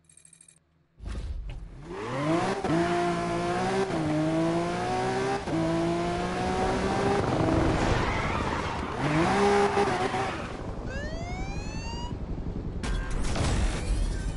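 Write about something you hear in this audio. A sports car engine roars and revs up through the gears.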